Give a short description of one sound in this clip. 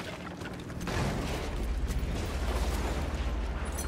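Footsteps thud on wooden steps and boards.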